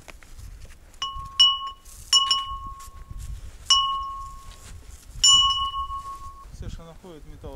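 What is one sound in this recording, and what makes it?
A bell rings out several times as it is struck.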